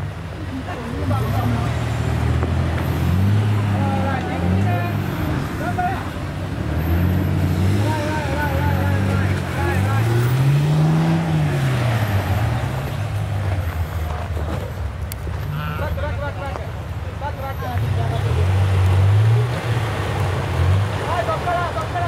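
An off-road vehicle's engine revs up and down.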